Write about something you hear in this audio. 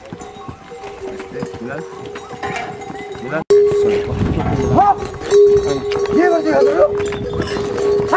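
Mules' hooves clop on stone steps.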